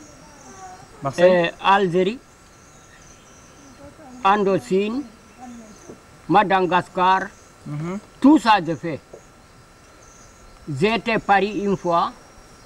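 A man speaks with animation close by, outdoors, in short bursts.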